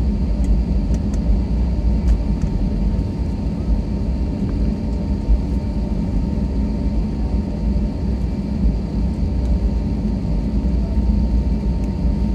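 Jet engines hum steadily from inside a taxiing airliner cabin.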